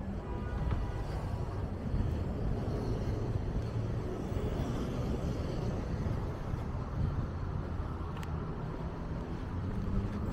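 Traffic rumbles steadily on a city street nearby.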